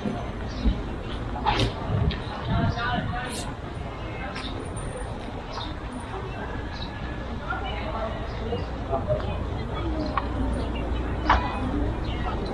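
A crowd of men and women chatter in the distance outdoors.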